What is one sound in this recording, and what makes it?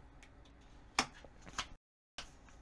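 Cards tap softly onto a table.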